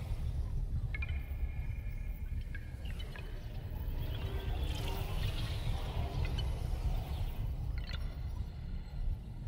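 Soft menu chimes ring out as options are selected.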